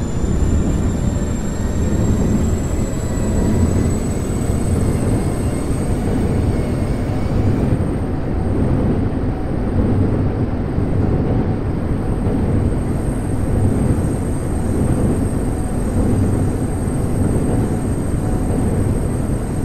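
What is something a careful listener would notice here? A subway train rumbles steadily along the tracks, heard from inside the carriage.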